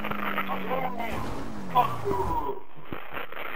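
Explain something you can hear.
A car crashes through bushes with a rustle and thud.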